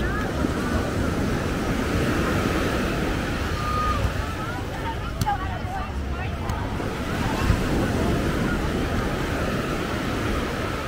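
Waves wash onto the shore nearby.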